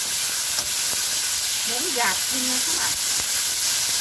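A wooden spatula stirs pork in a frying pan.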